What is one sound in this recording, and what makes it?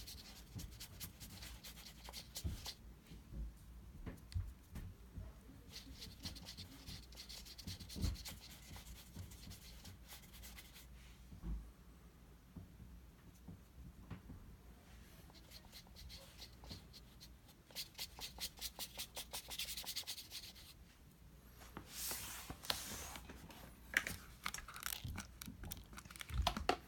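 A pencil scratches and rubs softly on paper.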